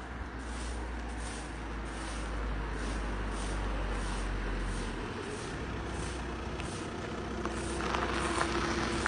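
A broom sweeps gravel on pavement in steady strokes.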